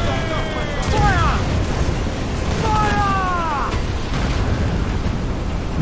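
Explosions rumble.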